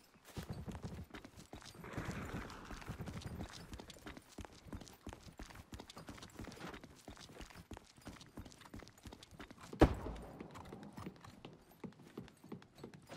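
Footsteps thud on hard ground and metal stairs.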